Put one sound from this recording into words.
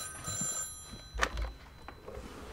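A telephone handset is lifted with a clatter.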